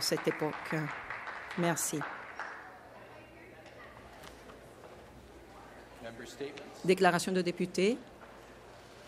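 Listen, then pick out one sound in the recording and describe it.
A man speaks formally through a microphone in a large echoing hall.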